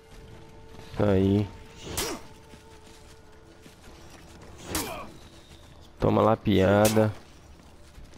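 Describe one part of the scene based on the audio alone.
A man grunts and shouts with effort during the fight.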